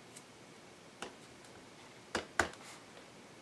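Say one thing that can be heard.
A stamp taps softly on an ink pad.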